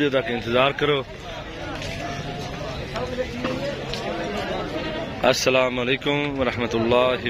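Several men talk in the background, outdoors.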